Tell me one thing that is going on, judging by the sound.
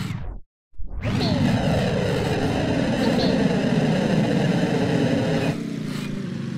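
A small motor engine roars louder for a few seconds.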